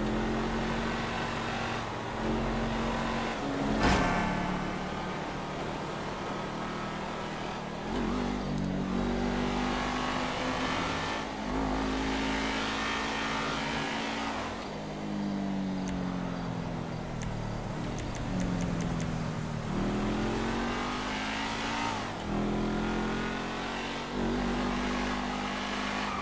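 A sports car engine roars steadily, rising and falling in pitch as it shifts gears.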